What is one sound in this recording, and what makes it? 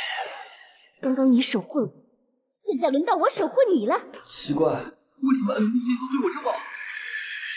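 A young woman speaks with urgency, close by.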